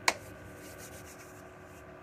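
A woman rubs her hands together.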